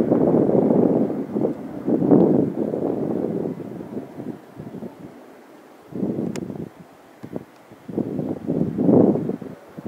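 A jet airliner roars high overhead with a low, uneven rumble.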